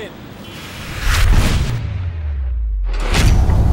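A fireball bursts with a deep roar.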